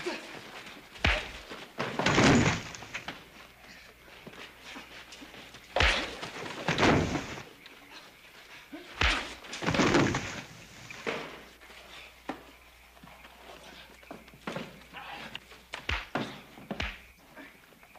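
Punches land with heavy thuds in a fist fight.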